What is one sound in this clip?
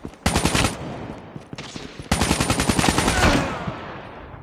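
An automatic rifle fires rapid bursts with a loud echo.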